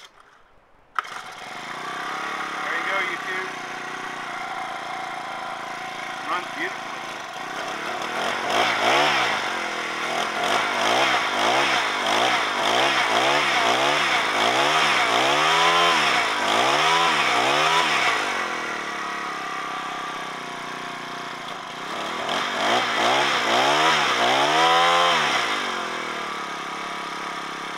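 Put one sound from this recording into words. A small petrol engine sputters to life and runs steadily close by.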